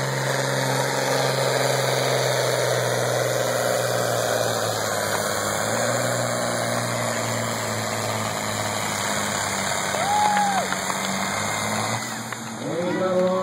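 A sled scrapes along a dirt track.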